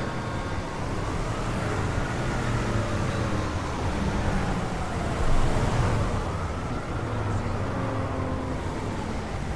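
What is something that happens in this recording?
A siren wails in the distance, rising and falling slowly.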